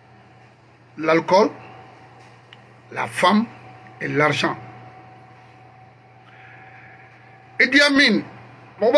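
A middle-aged man speaks with animation in short bursts, close to a microphone.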